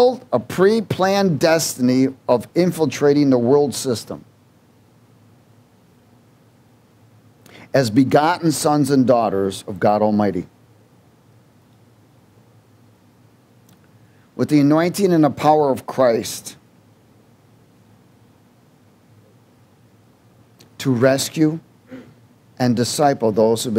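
A man speaks calmly into a microphone, in bursts with pauses between.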